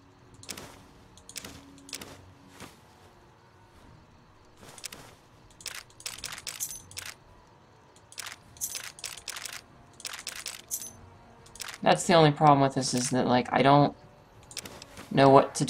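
Short clicks and ticks sound as items are moved between lists in a game menu.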